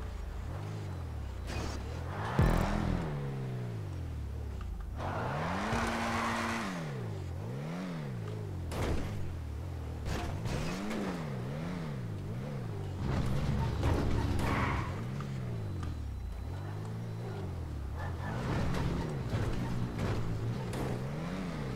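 A car engine revs up and down repeatedly.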